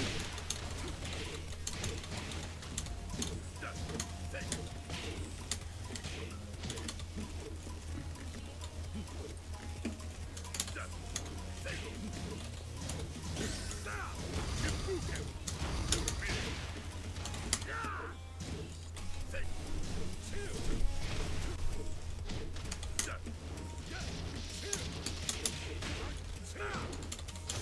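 Punches and kicks land with sharp smacks in a fighting game.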